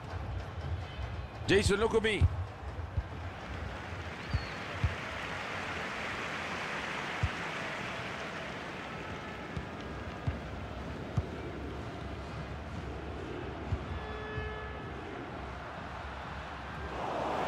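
A stadium crowd roars and murmurs steadily.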